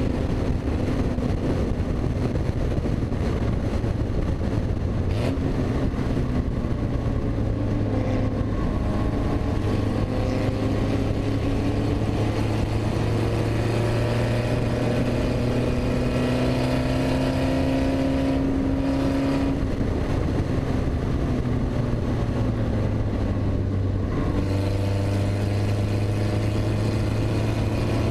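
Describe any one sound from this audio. A car engine roars loudly, rising and falling in pitch as it revs and shifts gears.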